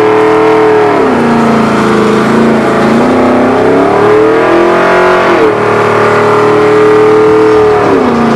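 A truck engine roars loudly, revving up and down.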